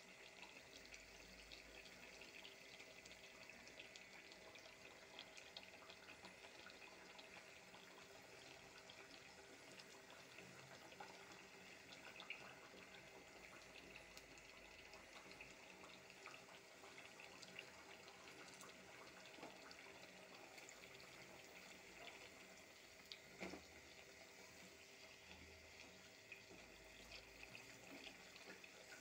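Oil sizzles and crackles steadily as food fries.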